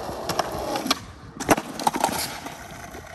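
A skateboard clacks sharply against the pavement.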